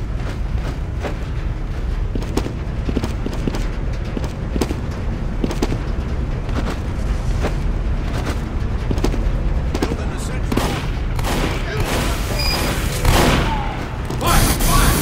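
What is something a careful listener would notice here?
Footsteps patter steadily on hard ground.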